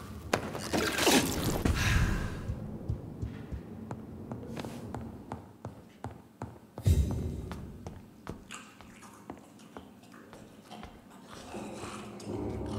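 Footsteps thud on wooden floors and stairs.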